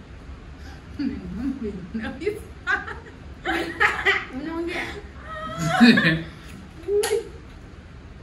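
A man talks and laughs close by.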